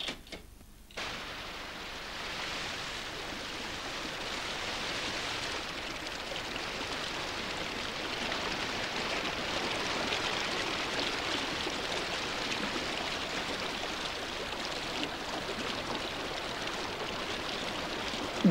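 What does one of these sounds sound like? A rushing stream roars steadily over rocks.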